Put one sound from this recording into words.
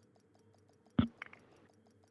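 A menu click sounds once.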